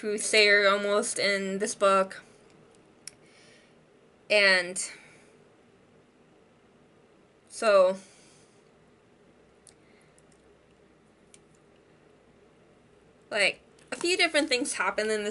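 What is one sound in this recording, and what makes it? A young woman talks close by, in short bursts with pauses.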